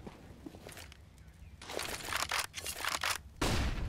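A rifle is drawn with a short metallic click.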